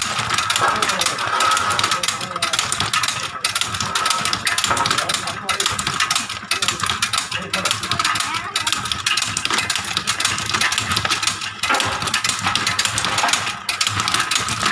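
Dry roasted nuts rattle and clatter as a hand stirs them on a metal tray.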